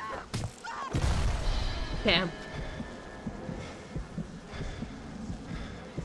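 An explosion booms and roars loudly.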